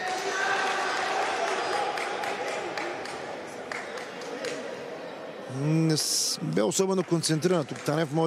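A ball thuds as players kick it in an echoing hall.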